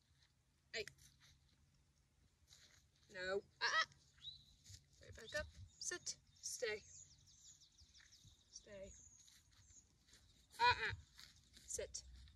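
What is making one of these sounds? A young woman gives short commands to a dog nearby, outdoors.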